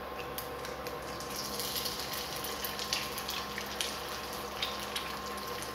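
An egg sizzles as it fries in hot oil.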